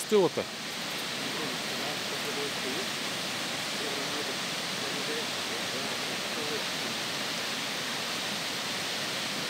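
A small mountain waterfall rushes over rocks.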